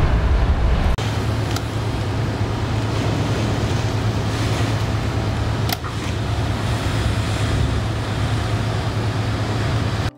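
Heavy rain beats against a glass door.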